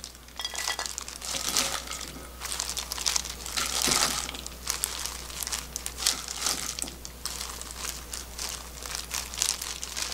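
Food scrapes and rustles as it is moved onto a plate.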